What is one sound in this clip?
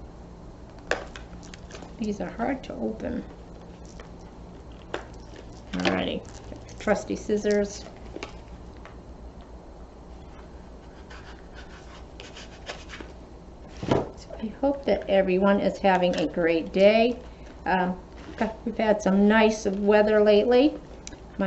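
Paper rustles and crinkles as hands unwrap something.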